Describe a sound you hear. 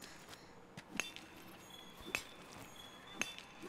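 A pick chips at a crystal rock.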